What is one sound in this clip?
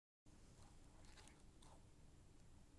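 Fingers handle a phone with faint rustling and tapping.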